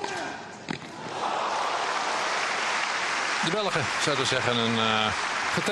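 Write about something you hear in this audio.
A crowd applauds loudly in a large indoor hall.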